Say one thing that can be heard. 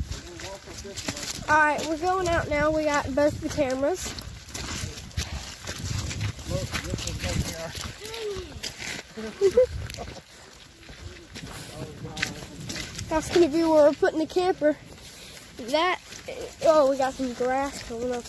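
Footsteps crunch on dry leaves and mud.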